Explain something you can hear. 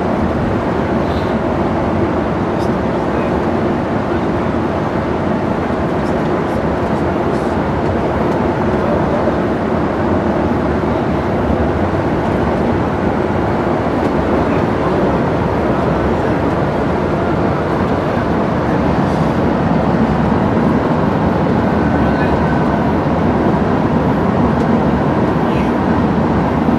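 Tyres roar on asphalt.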